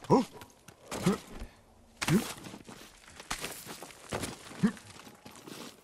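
Hands and boots scrape on rock during a climb.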